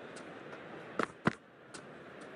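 A cricket ball thuds sharply against a bat.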